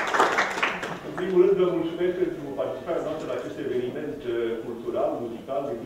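An elderly man speaks calmly to an audience in an echoing hall.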